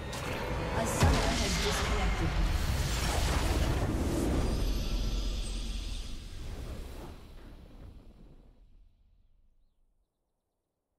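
A game's victory fanfare swells and then fades away.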